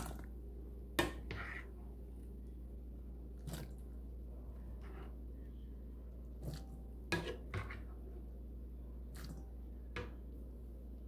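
A metal ladle clinks and scrapes against a metal bowl.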